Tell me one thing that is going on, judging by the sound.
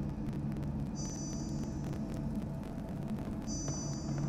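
An electronic console gives out steady high beeps.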